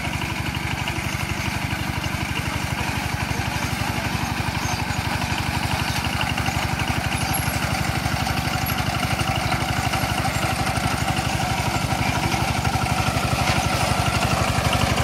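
The single-cylinder diesel engine of a two-wheel hand tractor chugs.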